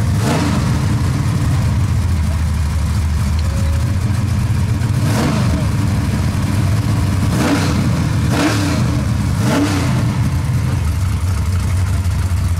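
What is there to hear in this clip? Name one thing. A race car engine idles with a loud, deep, lumpy rumble.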